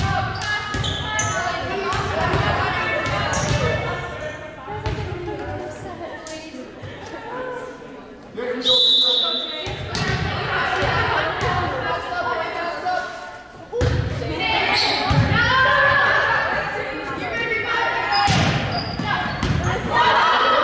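Players and spectators shout and chatter in a large echoing gym.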